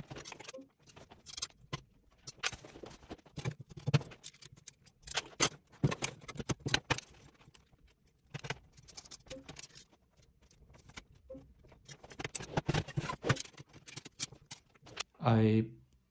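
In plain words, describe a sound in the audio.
Glass panels and metal frame pieces knock and click as they are fitted together.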